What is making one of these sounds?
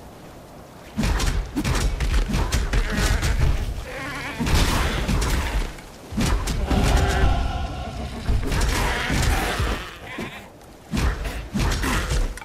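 Magic blasts crackle and burst in a fast fight.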